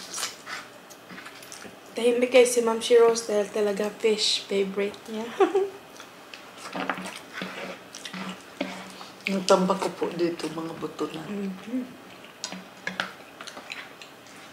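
Two women chew and smack food close to a microphone.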